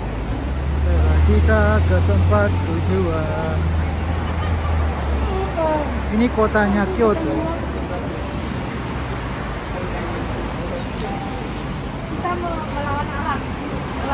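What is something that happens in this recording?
Young women talk nearby.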